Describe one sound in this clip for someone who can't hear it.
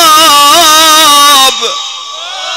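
A man chants loudly in a melodic voice through a microphone.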